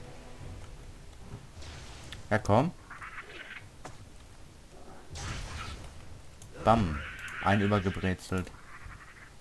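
Blows strike a creature in a fight.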